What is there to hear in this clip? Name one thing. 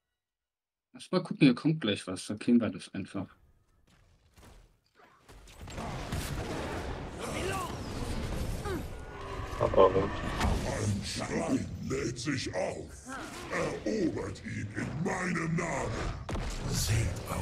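Magic blasts and weapon hits crackle and burst in a game battle.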